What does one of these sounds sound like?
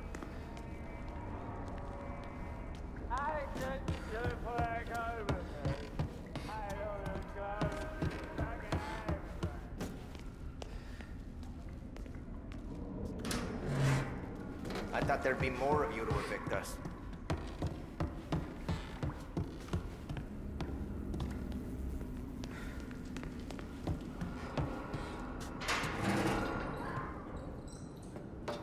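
Footsteps tread steadily on a hard wooden floor indoors.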